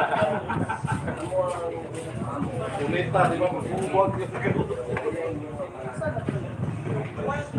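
Several men talk and chatter nearby.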